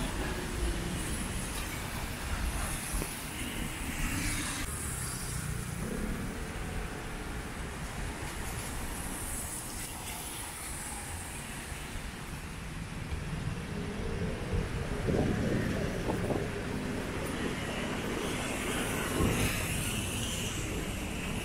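Cars pass by with tyres hissing on a wet road.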